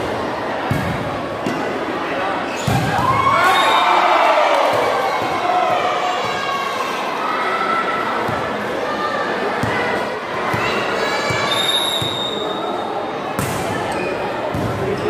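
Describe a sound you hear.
A crowd of spectators cheers and shouts loudly in a large echoing hall.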